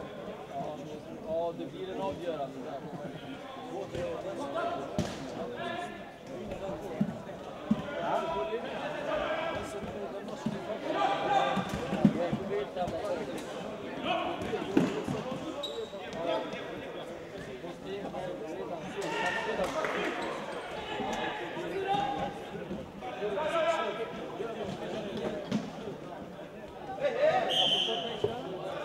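Sports shoes squeak on a hard floor.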